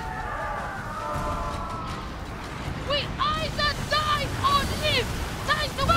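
Waves crash and surge against a ship's hull.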